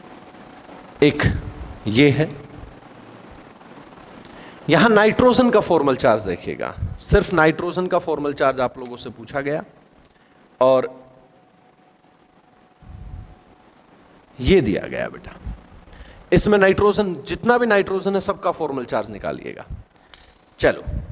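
A man speaks through a close microphone, explaining calmly and clearly.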